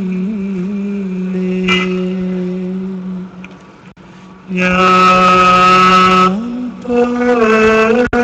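A large crowd chants loudly together in long, drawn-out notes.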